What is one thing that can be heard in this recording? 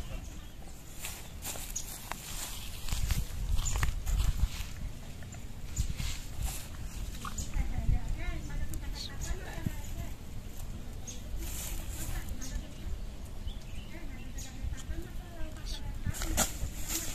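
Dry plant stalks rustle and crackle underfoot.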